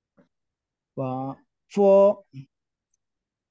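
A woman clearly pronounces short syllables over an online call.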